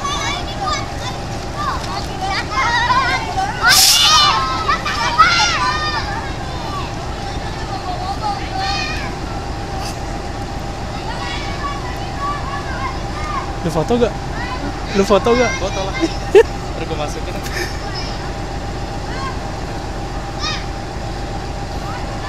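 Steel wheels roll and clack on rails.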